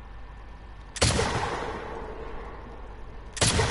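A rifle fires loud shots that echo across the hills.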